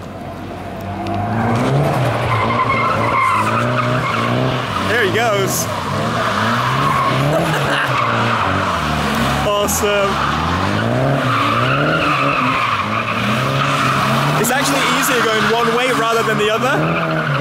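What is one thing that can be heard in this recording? Tyres screech on tarmac as a car drifts in circles.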